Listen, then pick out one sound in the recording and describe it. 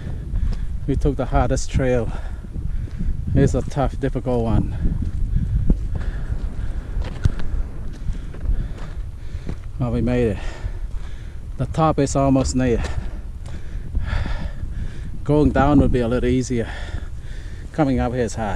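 Footsteps crunch on a gravelly dirt path.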